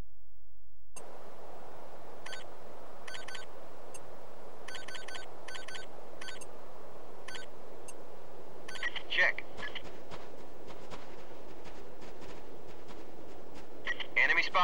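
Wind howls steadily across open snow.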